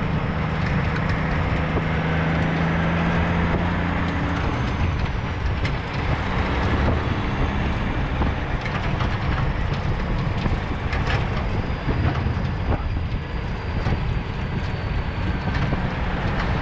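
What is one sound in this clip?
Truck tyres roll and hum on a gravel road.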